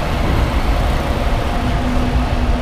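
A truck's engine rumbles nearby.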